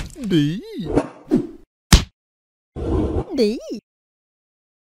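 A cartoon character speaks in a squeaky, high voice.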